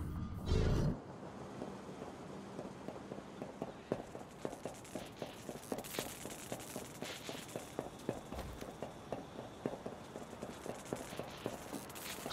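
Soft footsteps patter quickly on a hard floor.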